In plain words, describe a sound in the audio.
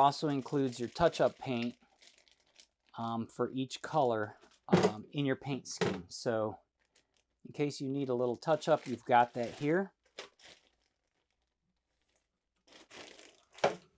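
Plastic packaging crinkles in a man's hands.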